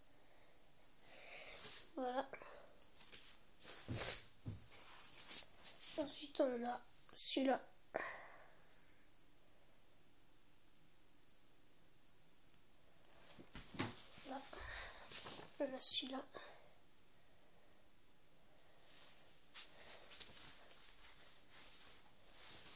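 Sheets of paper rustle and flap as they are handled.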